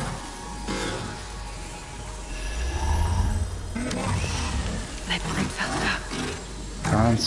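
Crackling magic energy buzzes and hums steadily.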